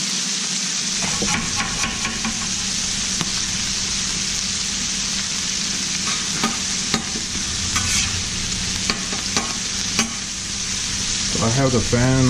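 A metal spatula scrapes and taps on a griddle.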